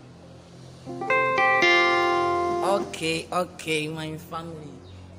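Electronic keyboard notes and chords play close by.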